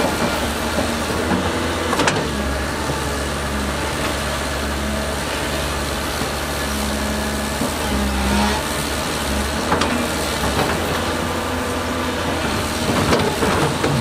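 Heavy diesel engines rumble steadily nearby.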